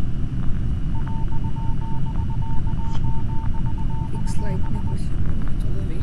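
A steady electronic beeping pulses while a game download fills.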